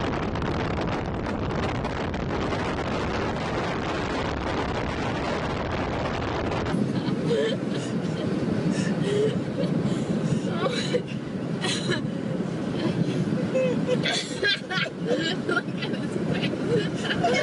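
Wind roars loudly past an open car window.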